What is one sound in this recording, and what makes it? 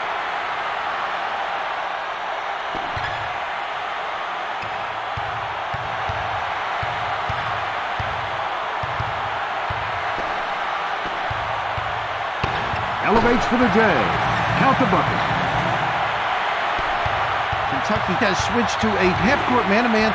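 A crowd roars steadily in a large echoing arena.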